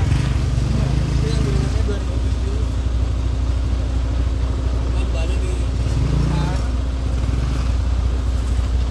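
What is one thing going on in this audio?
A large engine idles with a low, steady rumble.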